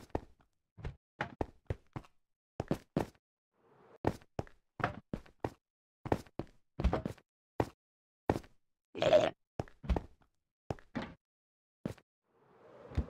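Quick footsteps tap on hard stone blocks.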